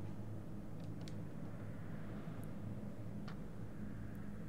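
Metal shells clink softly as a hand rummages through a box.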